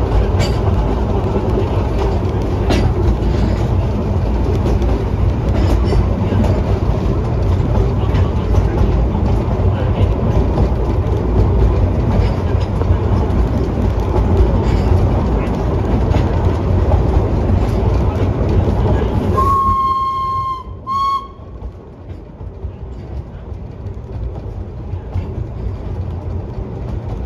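A steam train rumbles and clatters along the track.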